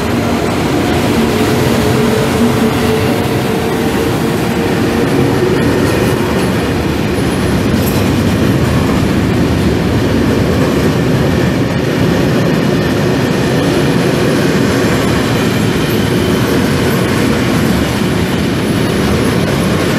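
An electric locomotive hauls a freight train past close by.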